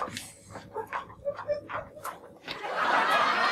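A woman speaks calmly nearby in a room.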